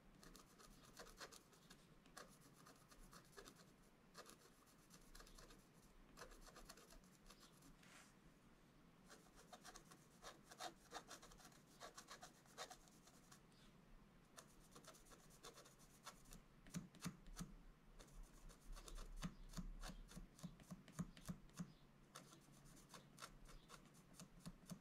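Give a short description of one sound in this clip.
A stylus scratches quickly across a paper surface.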